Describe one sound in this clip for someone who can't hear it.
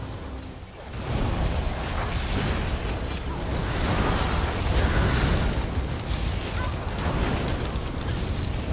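Magic blasts boom and rumble heavily.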